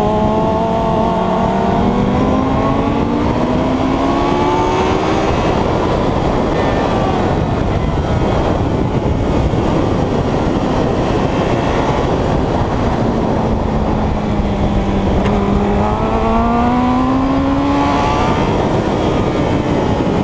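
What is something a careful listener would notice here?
A motorcycle engine revs up and down through the gears.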